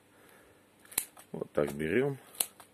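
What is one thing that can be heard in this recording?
Scissors snip.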